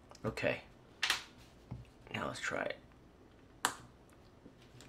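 Small plastic parts click and snap as a tiny device is handled.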